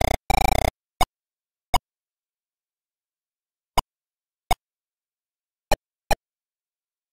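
Short electronic blips click now and then.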